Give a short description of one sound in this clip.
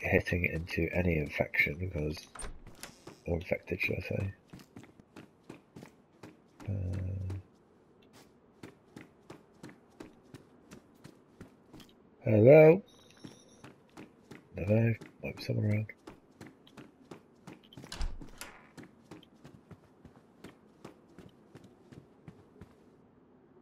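Footsteps tread steadily on a hard floor indoors.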